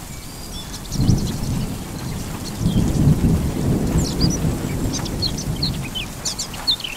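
Wind gusts across an open field outdoors.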